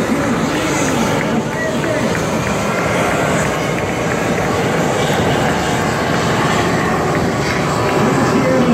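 A helicopter's rotor thumps steadily overhead in the distance.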